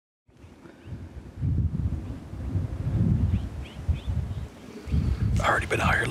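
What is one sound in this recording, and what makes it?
Wind gusts and buffets outdoors.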